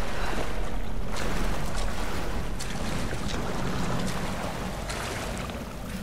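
Water swishes and splashes as someone wades through it.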